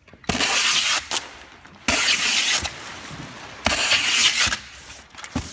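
Packing tape screeches loudly as it is pulled off a tape gun in long bursts.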